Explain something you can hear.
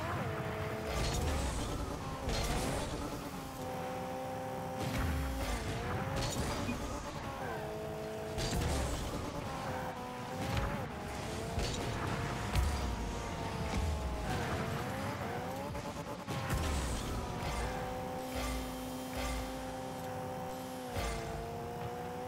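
A racing car engine hums and revs up and down.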